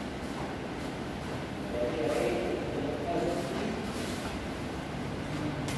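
Bare feet thump and shuffle on a padded mat.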